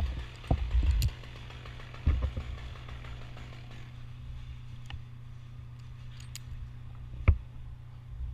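Pruning shears snip through a thin branch.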